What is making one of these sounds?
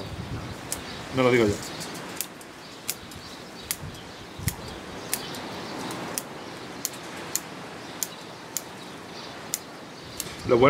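Scissors snip twigs with sharp clicks.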